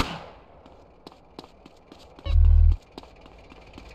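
A man runs with quick footsteps on dirt.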